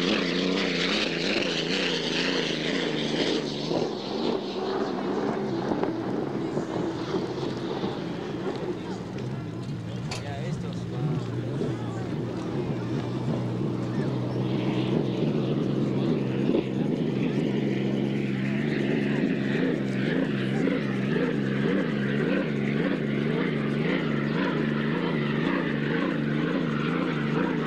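A racing boat's engine roars loudly as the boat speeds past.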